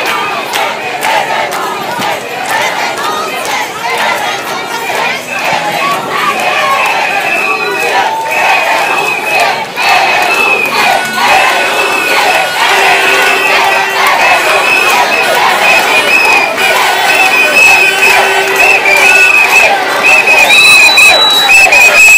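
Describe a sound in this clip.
A large crowd of marchers chatters and calls out in a street outdoors.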